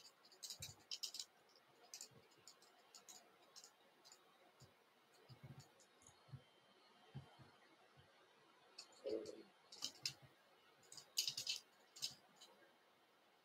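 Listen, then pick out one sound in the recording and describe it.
Thin thread rustles and ticks softly between fingers close by.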